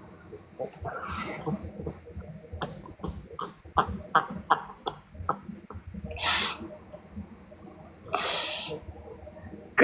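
An older man laughs heartily over an online call.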